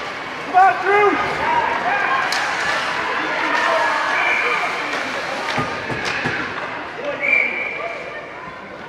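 A crowd cheers and shouts loudly in an echoing rink.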